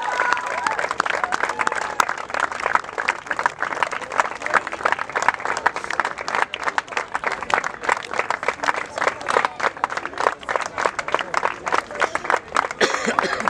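A small group of people claps hands outdoors.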